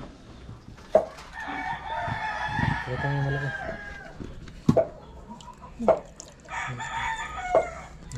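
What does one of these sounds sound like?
Water splashes in a basin.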